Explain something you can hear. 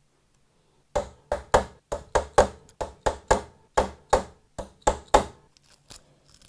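A small hammer taps repeatedly on metal.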